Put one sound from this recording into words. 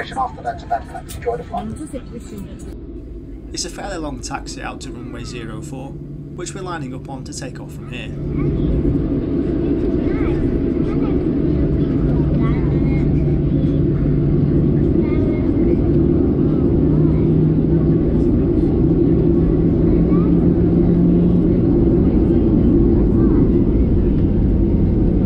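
A plane's wheels rumble over the tarmac.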